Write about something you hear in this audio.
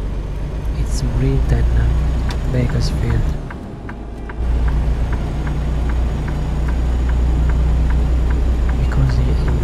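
A truck engine rumbles low and steady, dipping briefly as it shifts gear.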